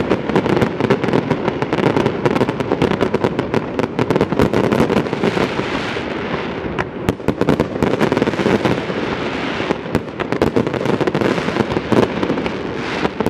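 Fireworks crackle and bang rapidly overhead.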